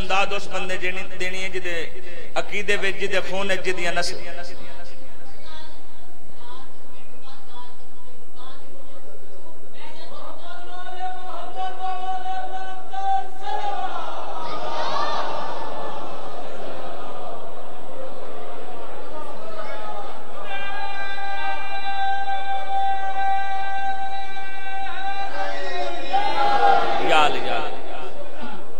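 Men chant along in chorus.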